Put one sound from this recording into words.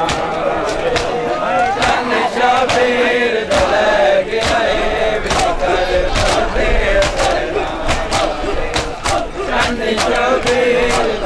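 Men beat their chests in a rhythmic pattern of loud slaps.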